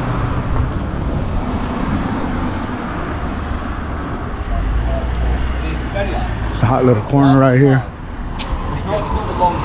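Traffic rumbles steadily along a street outdoors.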